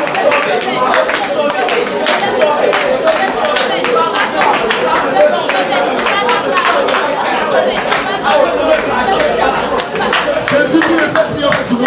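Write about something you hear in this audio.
Men and women sing loudly together nearby.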